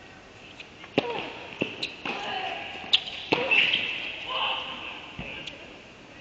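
A tennis ball is struck back and forth with sharp pops in a large echoing hall.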